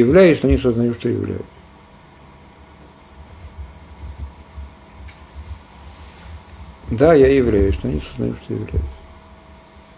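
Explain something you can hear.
An older man speaks calmly and close to a microphone, in short bursts with pauses.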